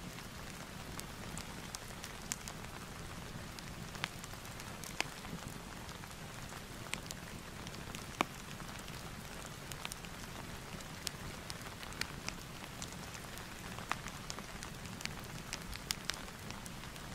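Book pages rustle softly under a hand.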